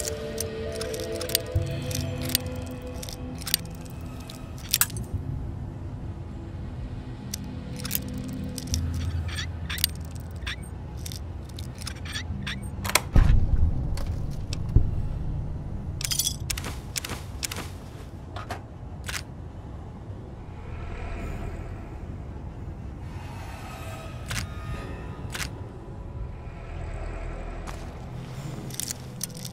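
A metal pick scrapes and clicks inside a lock.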